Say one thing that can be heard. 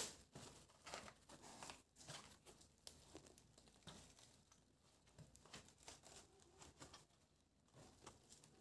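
Plastic sheeting crinkles as a wooden board is pressed down into it.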